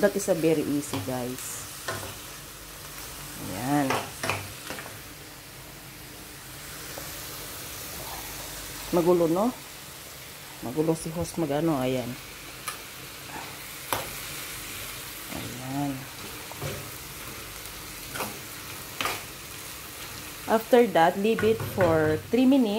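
A metal spoon scrapes and clinks against a frying pan.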